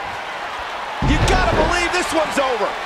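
A body slams heavily onto a wrestling mat with a deep thud.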